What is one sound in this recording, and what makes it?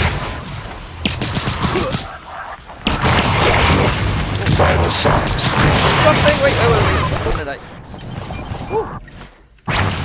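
A creature crackles and hisses with a distorted, static-like noise.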